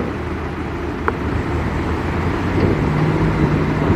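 A car engine revs as the car pulls away.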